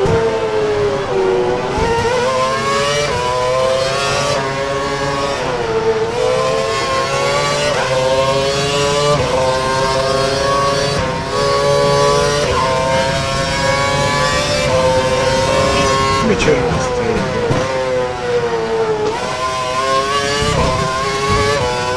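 A racing car engine screams at high revs, rising through each gear and dropping sharply at each shift.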